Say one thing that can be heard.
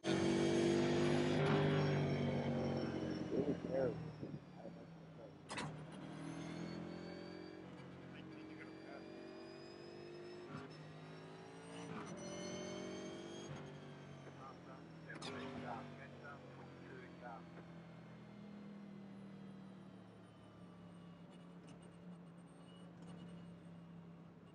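A race car engine drones steadily, its pitch rising and dropping as it shifts gears.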